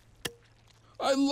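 A cartoon creature speaks in a high, worried voice.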